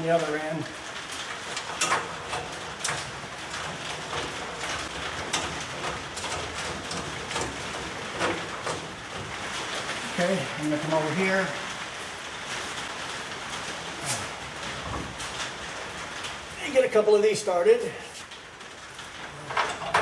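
Metal parts click and rattle.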